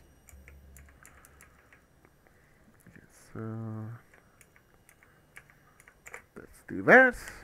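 Soft clicks tick quickly as a menu slider moves.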